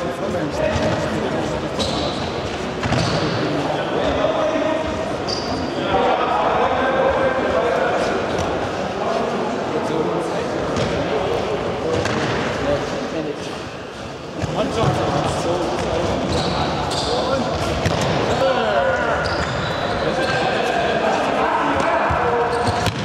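Young players shout and call out in a large echoing hall.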